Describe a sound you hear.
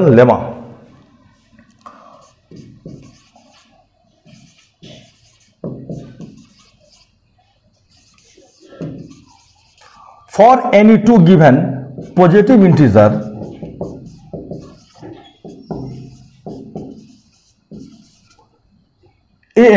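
A marker squeaks on a whiteboard as a man writes.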